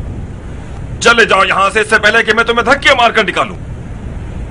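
A second man answers loudly and forcefully.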